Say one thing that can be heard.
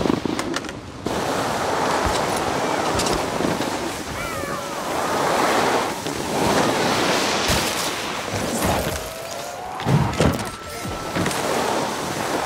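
Skis hiss and scrape over snow.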